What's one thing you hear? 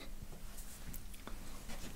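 A finger taps lightly on a thin panel.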